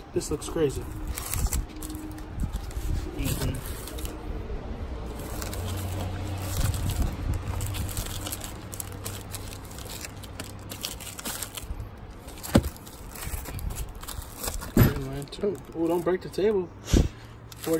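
Plastic sleeves crinkle and rustle as comic books are handled.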